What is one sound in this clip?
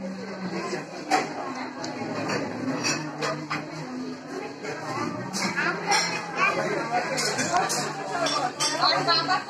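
Several women talk over one another nearby.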